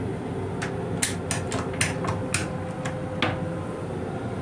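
A plastic toilet seat clatters as it is lowered.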